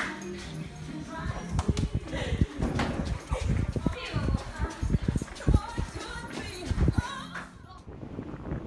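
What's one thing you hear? Footsteps run quickly along a hard floor.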